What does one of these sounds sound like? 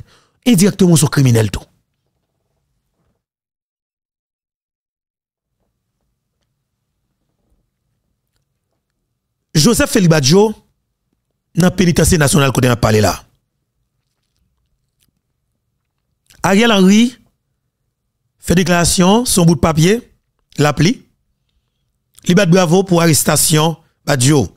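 A man speaks with animation into a close microphone, in bursts with long pauses.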